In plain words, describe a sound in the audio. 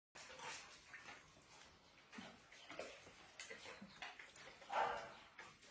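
A dog crunches dry food from a metal bowl.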